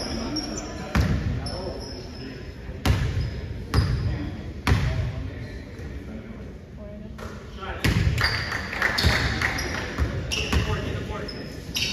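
A basketball bounces on a gym floor with loud thuds echoing in a large hall.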